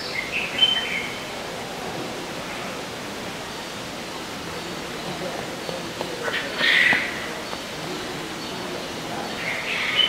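A cockatoo rustles its feathers softly while preening.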